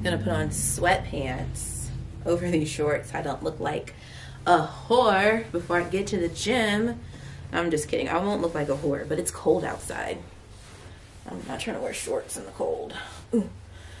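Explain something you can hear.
Fabric rustles as a young woman pulls on sweatpants.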